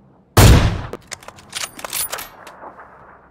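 A rifle bolt clicks and clacks.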